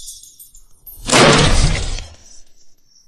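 A door bangs.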